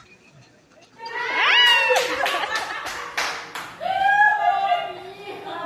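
A woman cries out and sobs with emotion close by.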